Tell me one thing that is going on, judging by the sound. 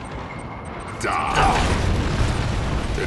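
A giant robot fires a weapon with a loud burst.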